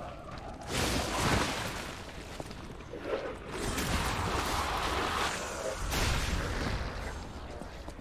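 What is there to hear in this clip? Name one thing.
A scythe blade swooshes through the air.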